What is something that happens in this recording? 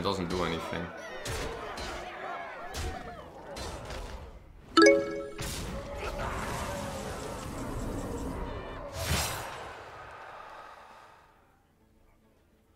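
Game sound effects chime and whoosh.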